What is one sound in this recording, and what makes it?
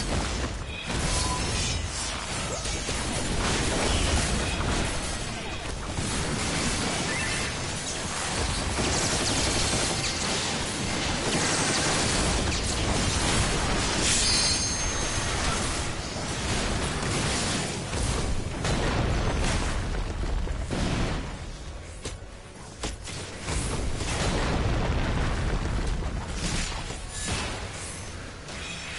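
Game battle sounds clash and boom.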